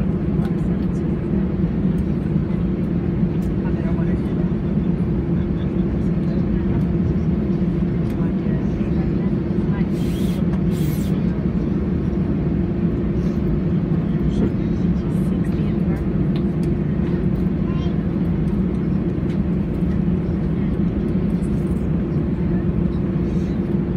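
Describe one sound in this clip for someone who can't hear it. Jet engines hum steadily and loudly from inside an airliner cabin as it taxis.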